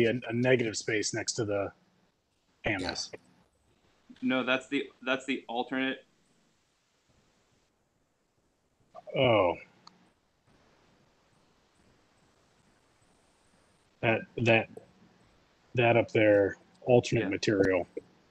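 Men talk in turns over an online call, with pauses between them.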